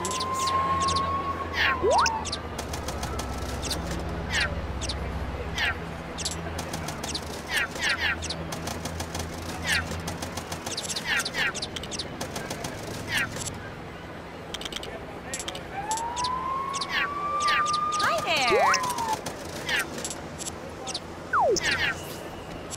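Short electronic blips and swishes sound again and again as menu choices change.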